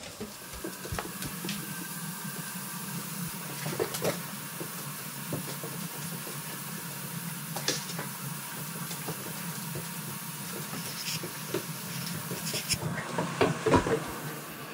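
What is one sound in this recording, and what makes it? Dogs' claws click and scrape on a wooden floor.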